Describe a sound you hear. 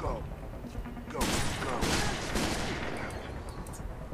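A heavy pistol fires several loud shots.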